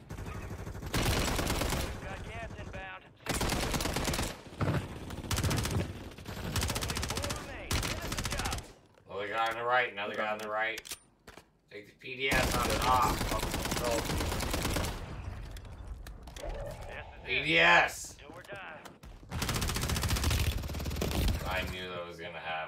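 Rapid gunfire bursts loudly and close.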